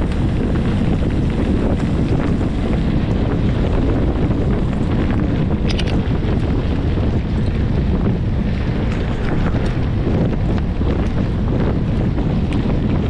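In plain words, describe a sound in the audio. Bicycle tyres crunch and rumble over a gravel track.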